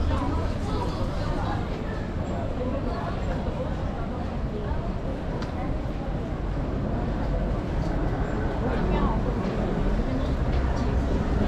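Footsteps tap on a paved path outdoors.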